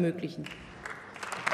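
A woman speaks briefly into a microphone.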